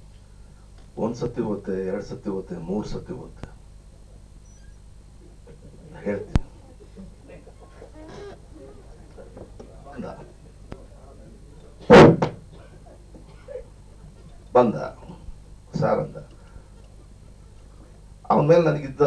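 A middle-aged man speaks into a microphone over a loudspeaker, in bursts with pauses.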